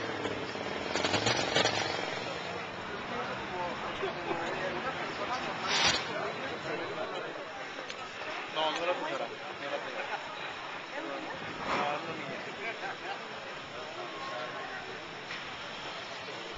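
Traffic rumbles past on a busy street.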